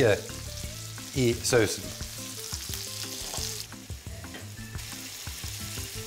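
Sauce splashes and sizzles as it is poured into a pan.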